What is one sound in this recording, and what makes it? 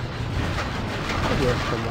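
A motorbike engine rumbles steadily.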